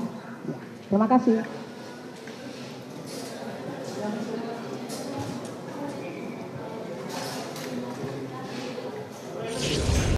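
A crowd of men and women talk and murmur close by.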